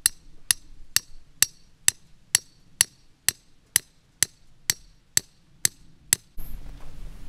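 A metal rod taps sharply in a steady, quick rhythm.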